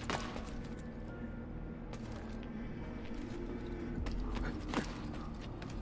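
Footsteps thud and scrape on stone.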